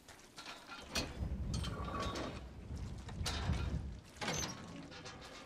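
A heavy iron gate creaks and rumbles open.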